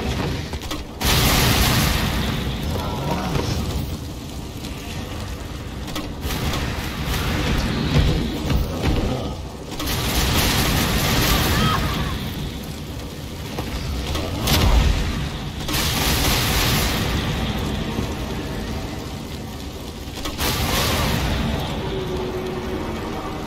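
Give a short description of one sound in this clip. Explosions boom and roar again and again.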